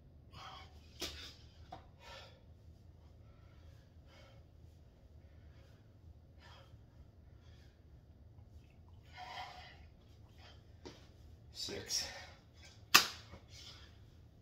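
Sneakers thud and scuff on the floor.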